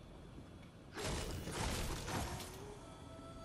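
A blast booms with a rush of debris.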